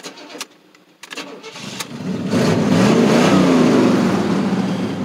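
A car engine starts and revs up with a rising roar.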